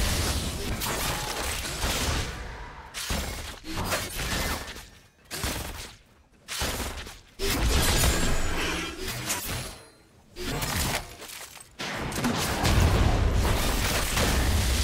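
Game spells and weapon strikes clash in a fight.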